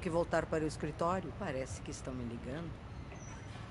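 An elderly woman speaks with feeling.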